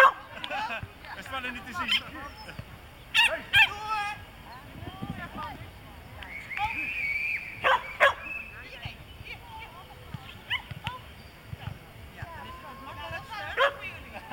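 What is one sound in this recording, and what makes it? A woman calls out commands to a dog outdoors.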